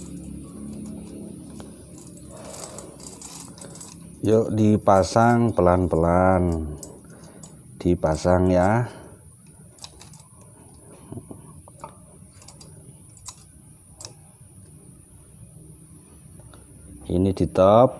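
Small metal engine parts click and clink as they are handled.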